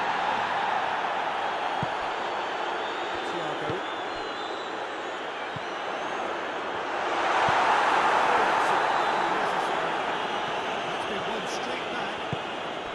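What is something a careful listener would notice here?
A large stadium crowd roars steadily, swelling louder for a few seconds.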